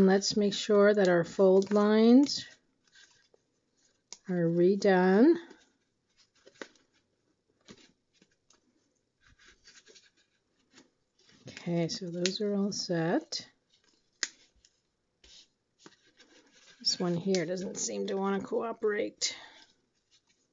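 Paper rustles and crinkles as it is folded and handled.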